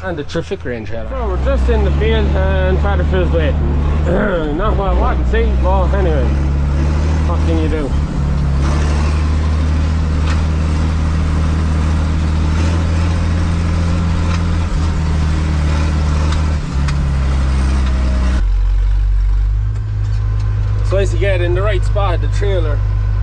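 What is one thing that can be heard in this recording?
A tractor engine rumbles steadily up close.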